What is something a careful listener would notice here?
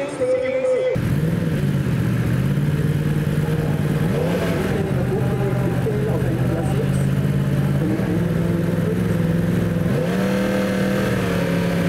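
A motorcycle engine idles and revs in short bursts close by.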